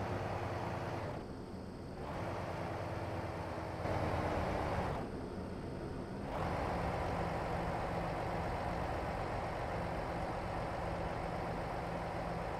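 A truck's diesel engine idles and rumbles steadily.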